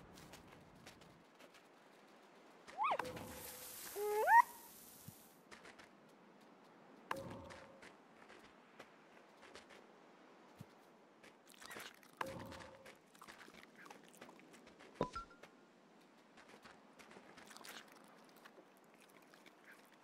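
Paws crunch softly through snow.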